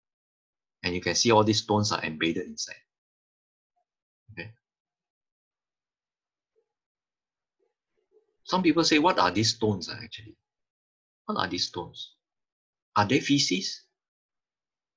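A man speaks calmly into a microphone, heard as if through an online call, with pauses.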